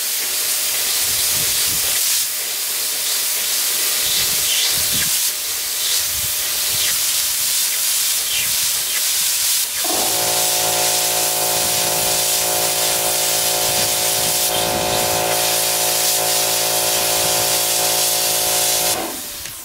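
A plasma torch hisses and crackles steadily as it cuts through metal sheet.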